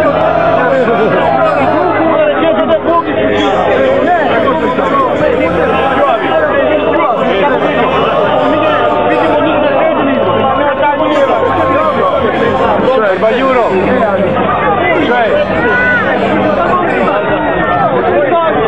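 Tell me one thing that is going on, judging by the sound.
A crowd of men and women chatters loudly close by, outdoors.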